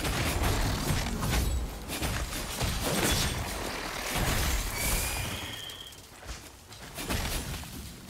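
Weapons clash and strike in quick blows.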